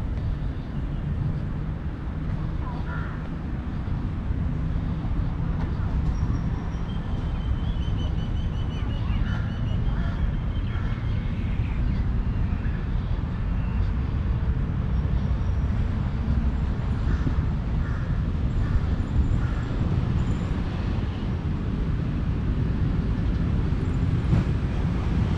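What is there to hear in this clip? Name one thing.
Wind rumbles steadily and gusts outdoors.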